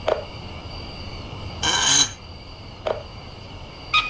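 A metal handle clicks into place on a pulley wheel.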